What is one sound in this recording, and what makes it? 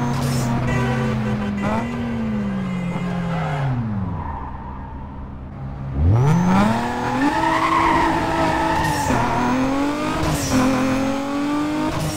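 A car engine revs loudly, winding down to an idle and then roaring up through the gears.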